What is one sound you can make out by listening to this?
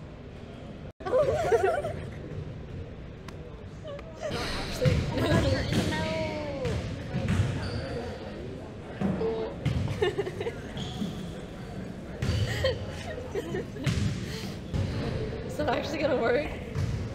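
Two teenage girls chat nearby.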